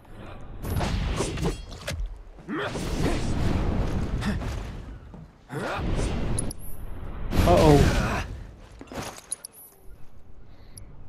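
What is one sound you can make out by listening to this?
A sword slashes through the air with sharp whooshes and clangs.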